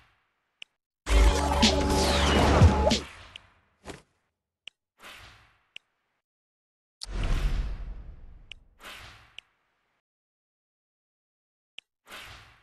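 Short electronic clicks sound as menu items are selected.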